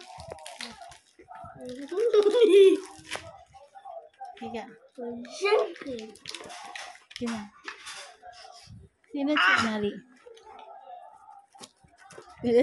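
Paper envelopes rustle in a child's hands.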